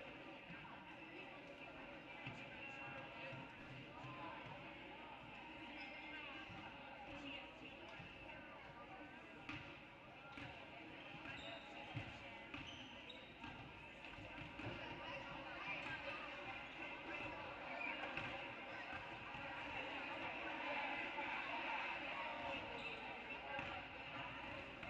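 Voices of young people chatter and call out in a large echoing gym.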